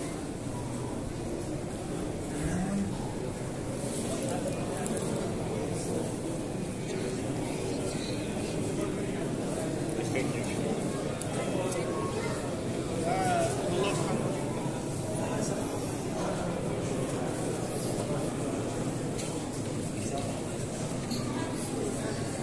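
A crowd of men murmurs and talks in a large echoing hall.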